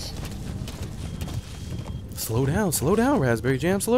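Horse hooves thud on rocky ground.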